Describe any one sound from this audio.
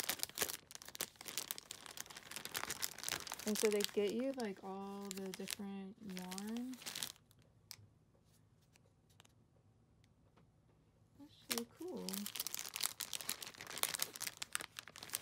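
Plastic packaging crinkles and rustles as hands handle it up close.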